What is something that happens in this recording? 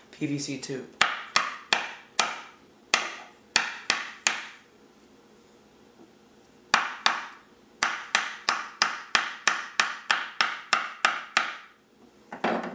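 A rod taps sharply and repeatedly on a wooden table.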